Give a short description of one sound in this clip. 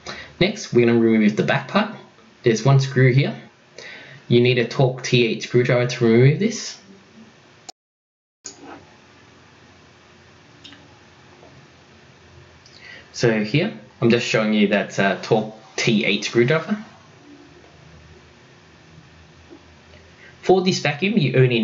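A man talks calmly and clearly close by.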